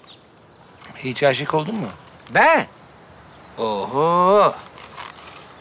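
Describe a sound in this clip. A man asks a question in a calm, close voice.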